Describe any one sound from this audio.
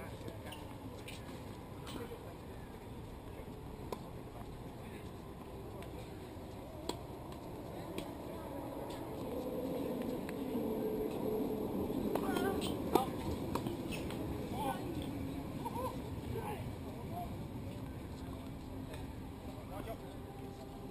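Tennis balls are struck with rackets in sharp pops, some distance away.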